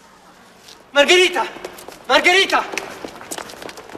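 A man shouts loudly.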